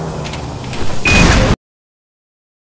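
An explosion booms and echoes.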